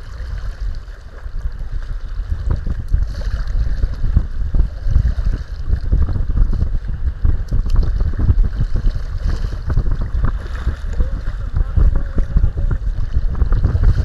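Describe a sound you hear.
Choppy waves slap against the hull of a small boat.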